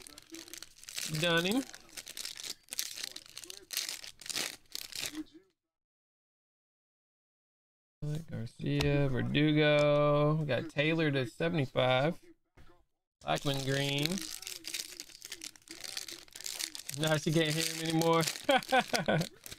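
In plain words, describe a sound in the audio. A foil trading card pack crinkles and tears as it is ripped open.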